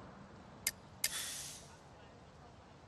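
A short interface sound plays as a warning pops up.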